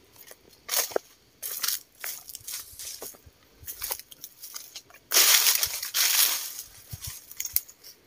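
Leafy branches rustle as they brush past close by.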